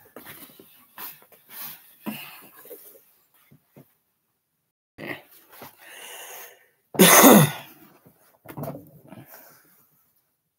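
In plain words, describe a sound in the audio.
Clothing rustles and bumps close to a microphone.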